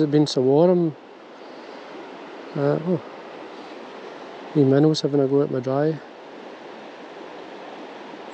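A river flows gently and steadily, outdoors.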